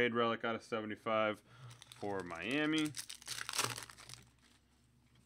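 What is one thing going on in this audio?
A foil wrapper crinkles and rustles as it is torn open.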